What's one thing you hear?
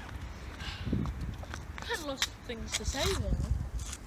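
A young boy talks and laughs close by.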